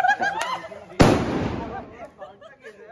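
A firecracker bangs loudly nearby.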